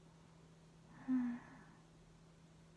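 A young woman makes a short hum or murmur close to a microphone.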